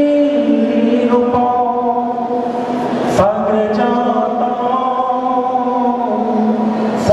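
A man sings with long held notes into a microphone, heard through loudspeakers.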